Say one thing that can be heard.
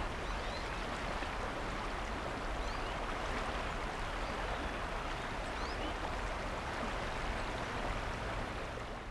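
Fast floodwater rushes and churns over rocks.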